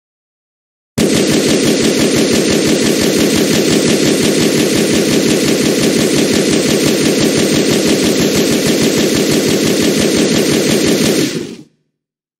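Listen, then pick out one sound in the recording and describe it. A pistol fires rapid shots without pause.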